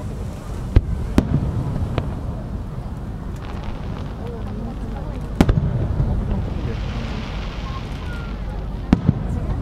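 Fireworks crackle and sizzle as they burst.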